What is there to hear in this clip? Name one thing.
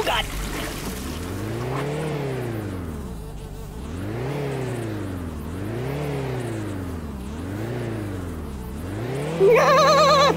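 A tone rises and falls again and again as a gauge needle swings.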